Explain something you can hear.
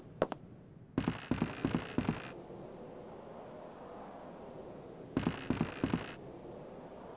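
Footsteps run and thud on wooden planks.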